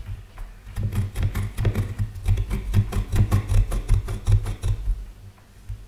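A metal file rasps rapidly against plastic.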